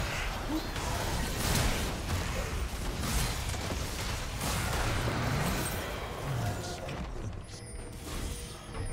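Game spell effects whoosh and crash in a fast fight.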